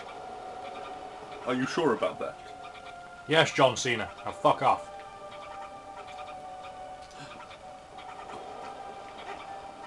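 Soft electronic game music hums steadily in the background.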